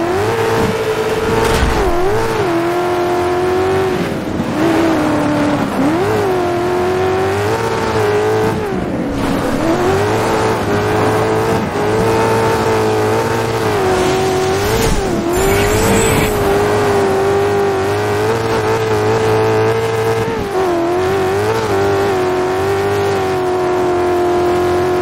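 A buggy's engine roars loudly, rising and falling in pitch as it shifts gears.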